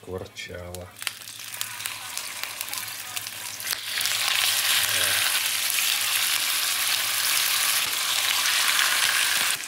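Meat sizzles loudly in hot oil in a pan.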